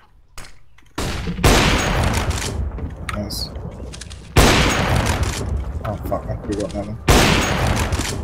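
A sniper rifle fires loud, booming shots a few seconds apart.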